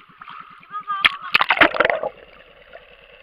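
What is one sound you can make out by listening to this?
Water splashes loudly as a snorkeler ducks under the surface.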